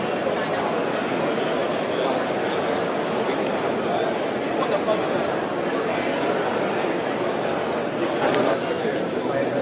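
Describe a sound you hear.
A man and a woman talk calmly close by.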